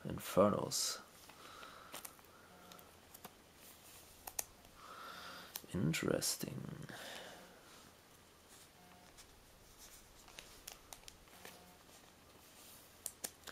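Trading cards slide and rustle against each other in a hand.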